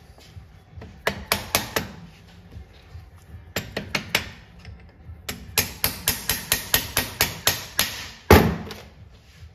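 A mallet taps repeatedly on a metal part.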